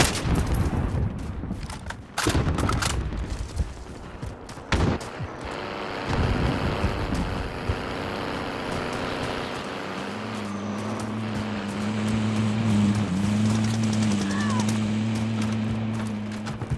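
Footsteps crunch quickly on the ground during a run.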